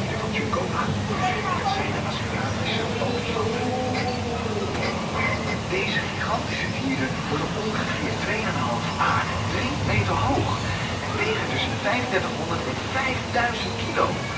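A river flows steadily over rocks.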